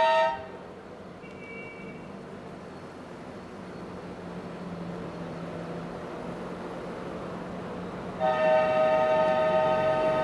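Small car engines putter and rumble as a line of old cars drives slowly past.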